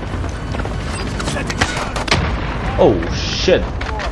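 An explosion booms as a vehicle is destroyed.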